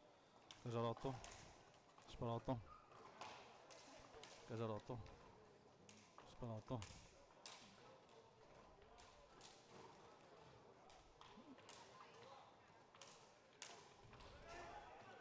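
Skate wheels roll and scrape across a hard floor.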